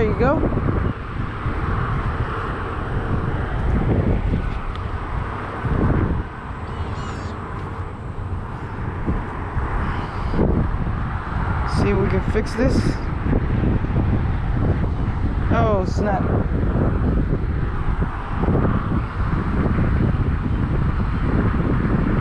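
Wind gusts and buffets the microphone outdoors.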